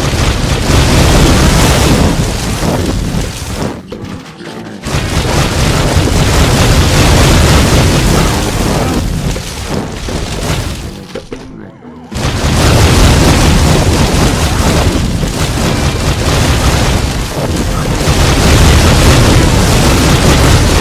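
Explosions burst with loud booms.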